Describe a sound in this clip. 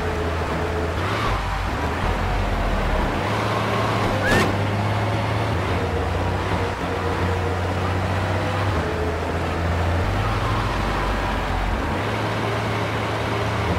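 A fire engine's engine drones as it drives in a video game.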